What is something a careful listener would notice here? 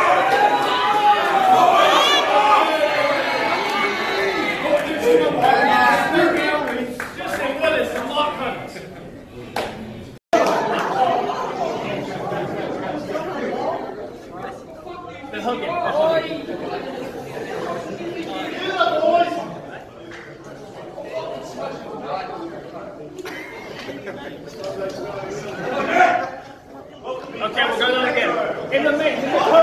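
Several men talk and chatter nearby in an echoing room.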